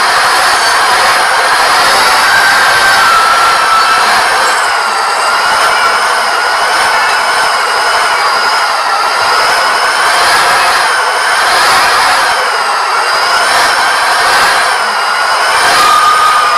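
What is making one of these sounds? A truck engine hums steadily as it drives slowly.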